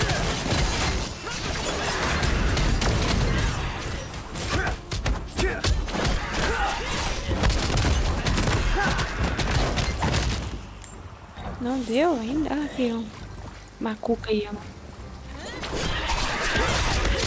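Magic blasts and sword strikes crackle and clash in quick bursts.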